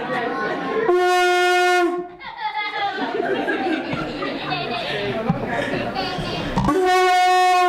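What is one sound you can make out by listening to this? A conch shell is blown, giving a loud, steady horn-like blast.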